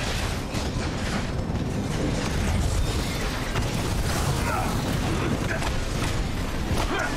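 Metal blows clang and thud in rapid succession.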